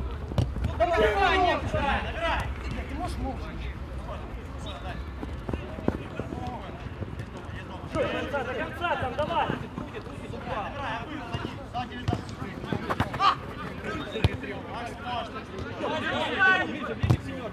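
A football thumps as players kick it.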